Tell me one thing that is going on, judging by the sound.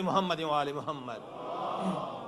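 A middle-aged man speaks with feeling through a microphone.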